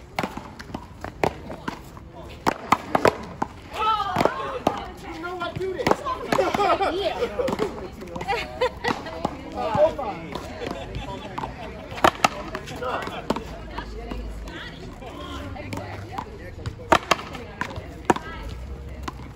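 A ball smacks against a wall outdoors.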